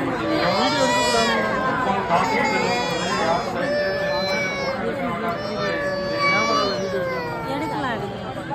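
A large crowd outdoors chants and calls out loudly.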